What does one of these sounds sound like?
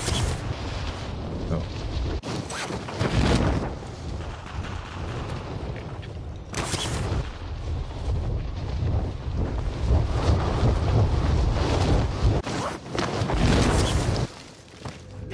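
Wind rushes loudly past during a fall through the air.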